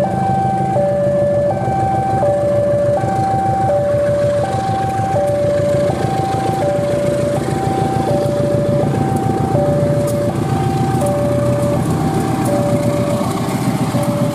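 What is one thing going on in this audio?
A diesel locomotive engine rumbles and throbs steadily close by.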